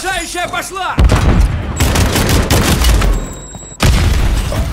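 An explosion booms loudly close by.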